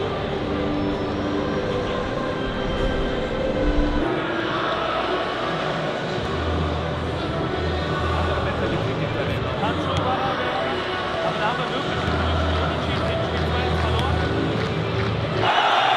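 A large crowd murmurs and chatters across an open stadium.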